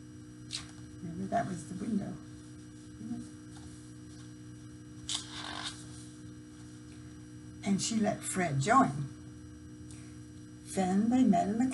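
An older woman speaks calmly, close to the microphone.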